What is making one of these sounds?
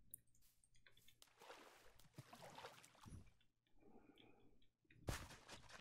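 Water splashes briefly.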